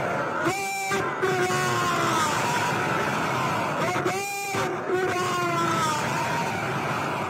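A large crowd cheers and chants in response.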